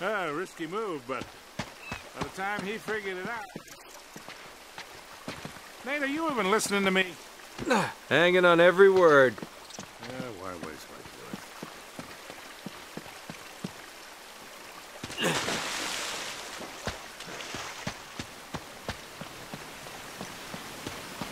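Footsteps patter quickly on rock and earth.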